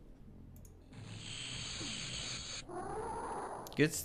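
A loud blast bursts with a rushing, hissing roar.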